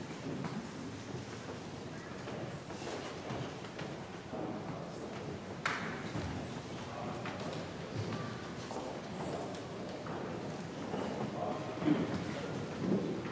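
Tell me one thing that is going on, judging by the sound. Voices murmur in a large echoing hall.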